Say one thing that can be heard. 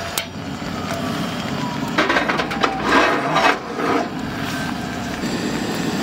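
A gas stove burner hisses steadily.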